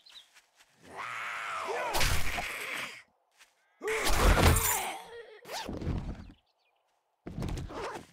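A knife slashes and thuds into flesh.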